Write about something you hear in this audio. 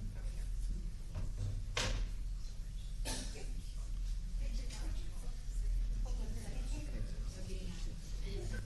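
A crowd murmurs softly in a large room.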